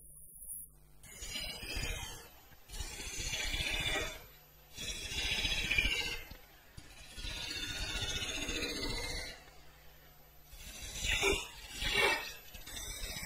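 A gouge hollows spinning wood, cutting in rasping bursts.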